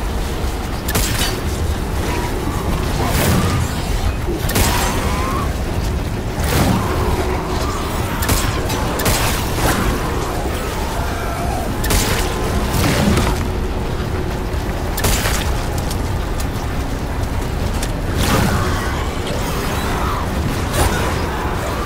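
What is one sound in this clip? Gunshots fire in sharp bursts.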